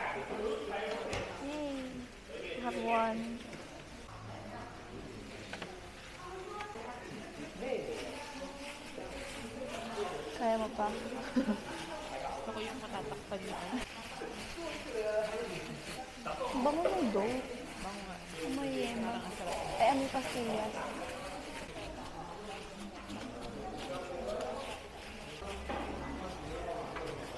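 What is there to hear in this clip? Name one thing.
Several young women chat close by.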